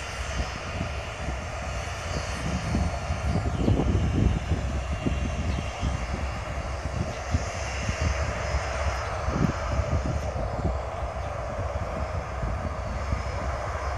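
A jet engine roars steadily from a distance.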